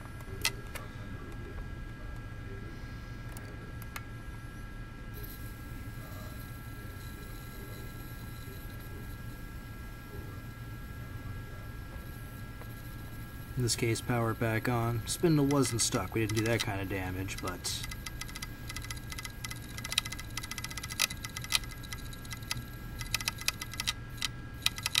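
An opened hard drive hums steadily.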